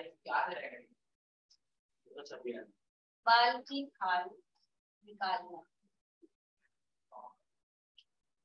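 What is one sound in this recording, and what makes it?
A young woman speaks calmly through a microphone, in short phrases.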